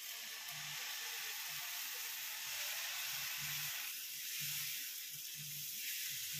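Batter sizzles softly on a hot pan.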